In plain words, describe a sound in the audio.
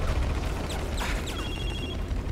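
Explosions boom in quick succession.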